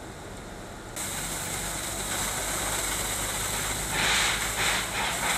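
Water jets hiss and spray.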